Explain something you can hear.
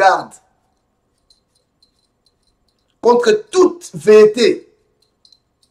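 A man speaks calmly and firmly into a microphone.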